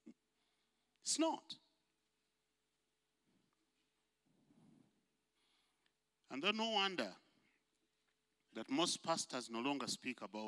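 An elderly man preaches with feeling through a microphone, in bursts with pauses.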